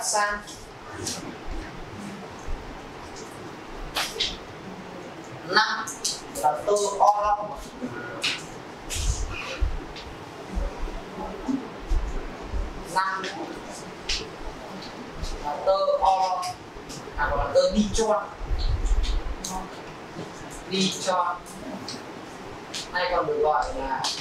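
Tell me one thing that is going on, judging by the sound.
A young man speaks calmly to a room, heard from a short distance.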